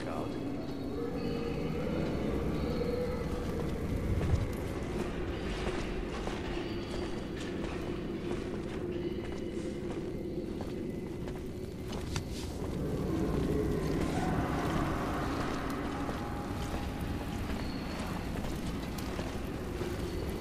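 Soft footsteps shuffle slowly over stone.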